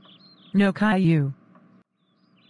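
A woman speaks sharply and briefly.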